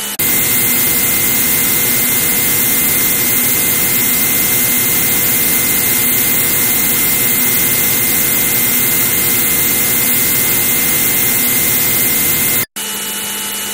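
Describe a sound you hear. A synthesized fighter jet engine roars in an old computer game.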